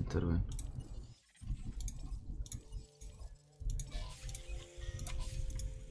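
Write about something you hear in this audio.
Soft interface clicks sound as a menu opens and an option is chosen.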